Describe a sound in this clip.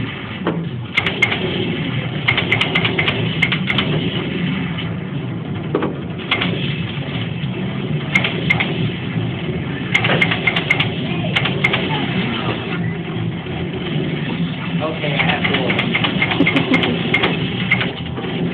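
An arcade shooting game fires bursts of rapid gunshots through its speakers.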